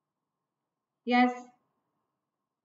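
A woman speaks a single short word calmly into a close microphone.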